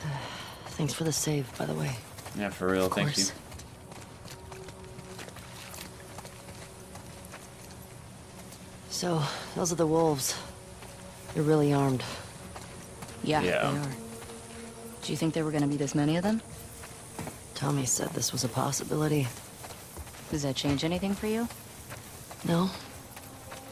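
A young man talks calmly through a microphone.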